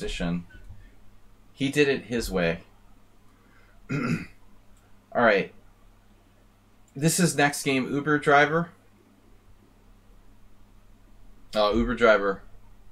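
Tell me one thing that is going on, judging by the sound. A middle-aged man talks calmly in short phrases into a microphone, with pauses.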